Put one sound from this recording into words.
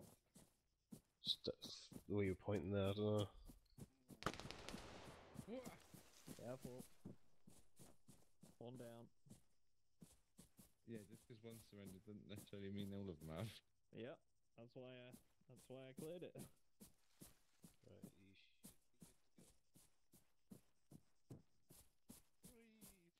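Footsteps rustle through tall grass at a steady pace.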